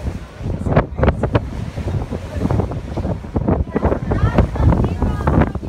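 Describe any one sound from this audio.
Choppy sea water splashes against a moving boat.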